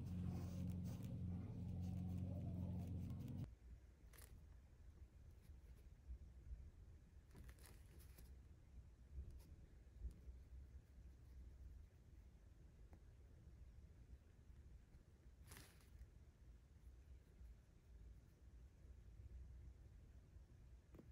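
A small paintbrush dabs and strokes paint on paper.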